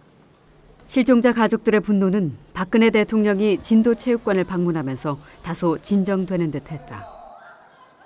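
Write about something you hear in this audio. A woman speaks with emotion close by.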